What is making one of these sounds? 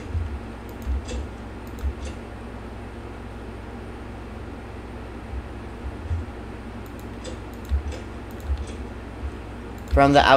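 Blocks snap into place with short soft clicks.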